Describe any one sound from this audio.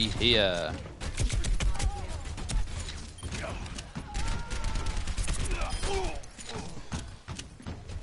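Energy weapons fire in rapid bursts of crackling shots.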